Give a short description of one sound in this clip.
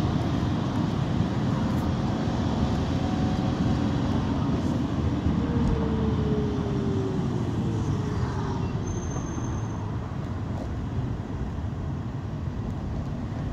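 A car engine hums steadily with road noise from inside a moving vehicle.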